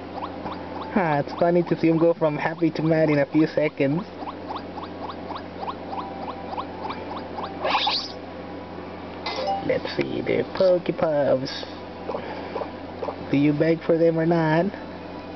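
A cartoon creature from a handheld game gives high, cute cries.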